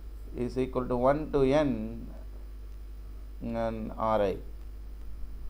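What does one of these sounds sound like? A man lectures calmly into a close microphone.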